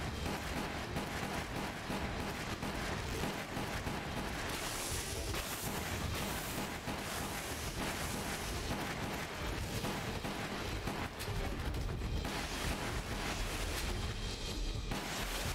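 Gunshots fire repeatedly.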